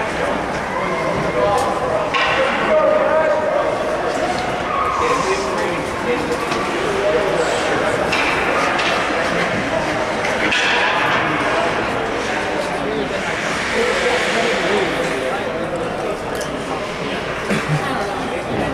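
Ice skates scrape and glide across ice in a large echoing rink.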